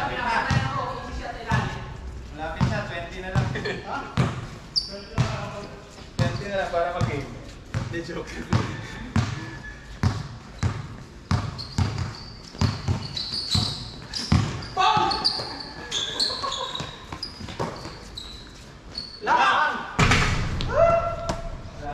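A basketball bounces on a hard court with regular thumps.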